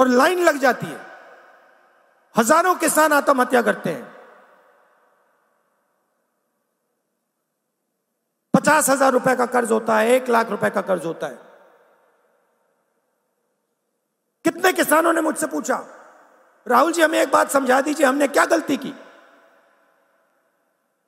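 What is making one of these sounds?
A middle-aged man speaks forcefully through a microphone, his voice echoing over loudspeakers in a large open space.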